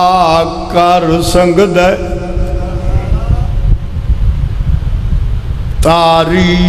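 A middle-aged man chants loudly in long, drawn-out notes through a microphone and loudspeakers.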